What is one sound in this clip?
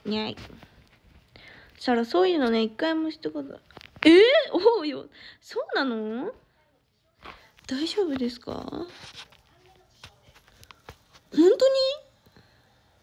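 A young woman speaks softly and expressively close to a microphone.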